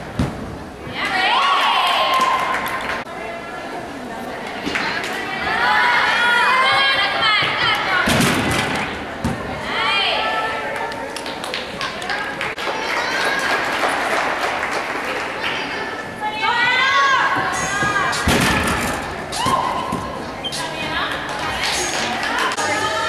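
A crowd cheers and whistles in a large echoing hall.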